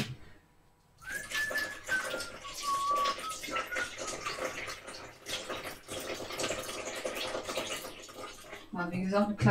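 Kitchenware clinks and clatters as it is handled.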